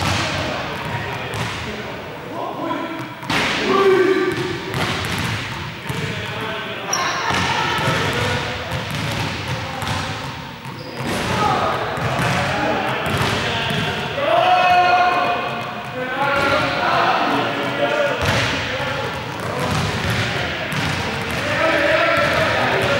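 Young men talk, their voices echoing in a large hall.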